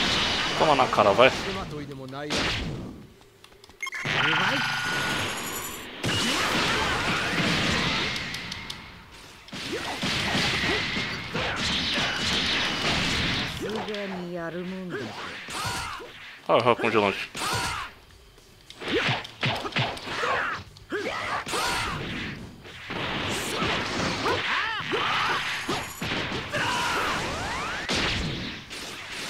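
Energy blasts roar and explode in bursts.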